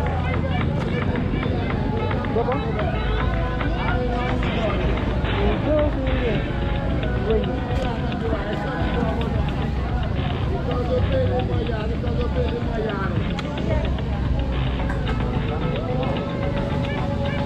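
A young woman talks close by.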